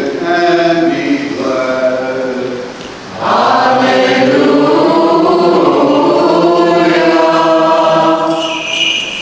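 A man chants in a steady sung voice through a microphone in an echoing hall.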